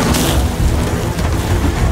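A helicopter's rotors thump loudly overhead.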